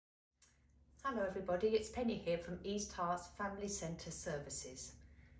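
A middle-aged woman speaks warmly and clearly to the listener, close to the microphone.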